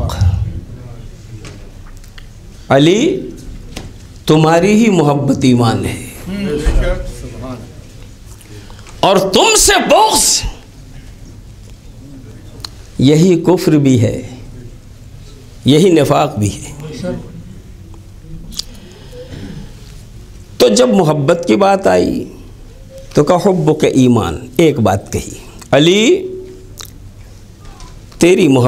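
A middle-aged man speaks with feeling through a microphone, in short bursts with pauses.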